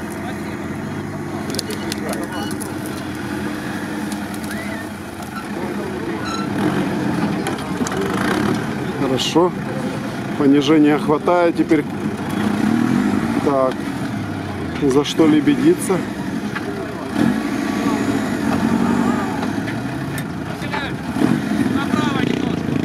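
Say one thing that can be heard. An off-road truck engine growls and revs close by.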